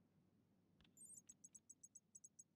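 Keyboard keys tap in a quick, even run.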